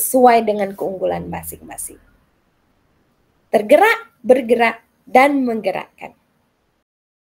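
A middle-aged woman speaks warmly over an online call.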